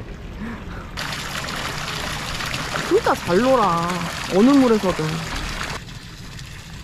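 Water splashes gently as a person swims.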